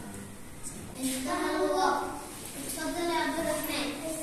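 Children call out together with high, eager voices.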